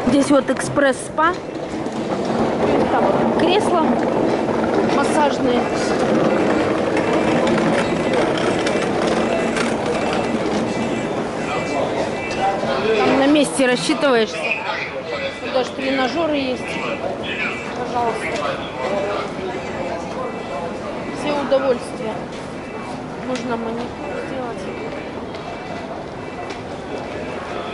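Many people chatter in a large, echoing hall.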